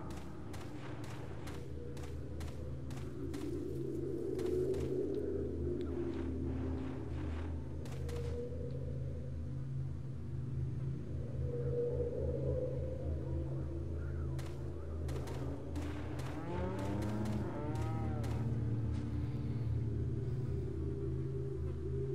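Footsteps crunch on dirt ground.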